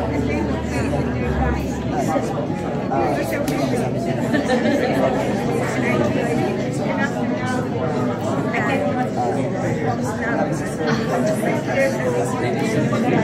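A crowd of men and women chatter at once in a busy room.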